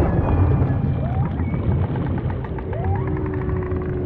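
Whales call underwater with short rising cries.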